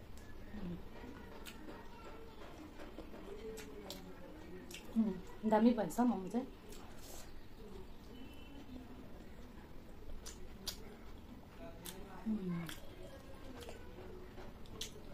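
A young woman chews and slurps food close to a microphone.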